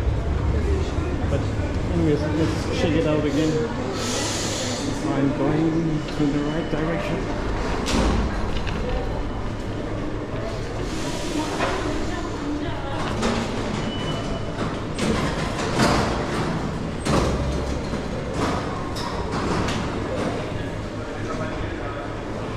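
Footsteps echo on hard floors and stairs in a tiled passage.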